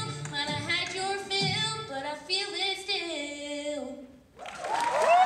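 A girl sings solo into a microphone, heard through loudspeakers.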